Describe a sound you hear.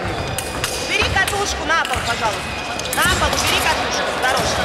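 Fencing shoes squeak on a sports floor.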